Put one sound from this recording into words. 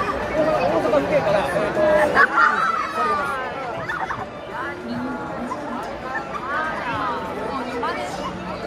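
A dense crowd of young people chatters and shouts all around, outdoors.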